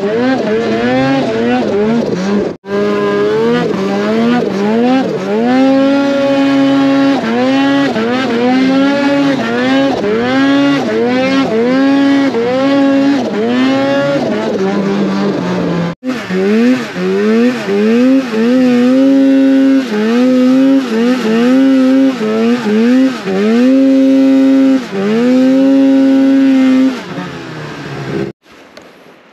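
A snowmobile engine revs up and down repeatedly, close by.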